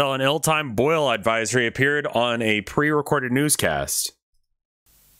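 A young man reads aloud into a close microphone.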